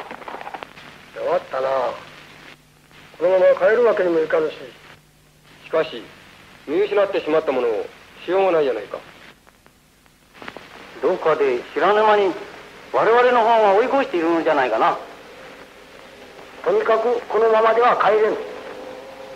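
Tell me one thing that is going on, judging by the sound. Several men talk with one another in turn, heard through an old, hissy recording.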